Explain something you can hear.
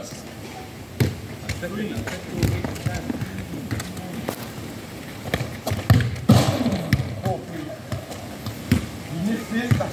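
A football thuds when kicked, some distance away.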